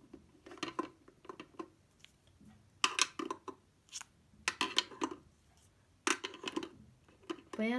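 Plastic pens clack as they drop into a plastic holder.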